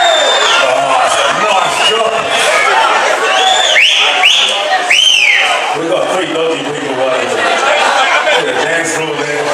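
A man sings into a microphone.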